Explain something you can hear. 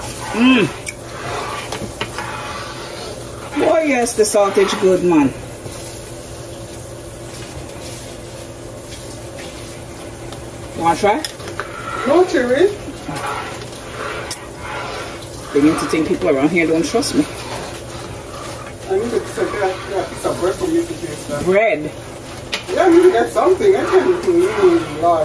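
A ladle stirs thick soup in a pot with soft, wet sloshing.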